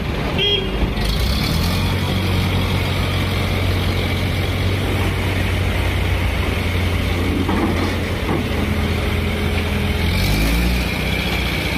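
A heavy engine idles nearby with a steady low rumble.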